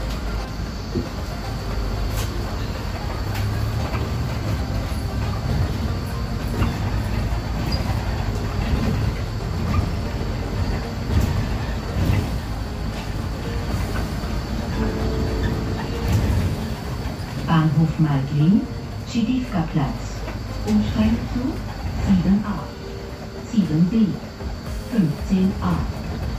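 A bus engine rumbles low and steady as the bus drives along.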